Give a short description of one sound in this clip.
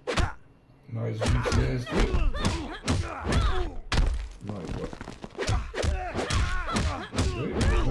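Punches and kicks thud and smack in a video game fight.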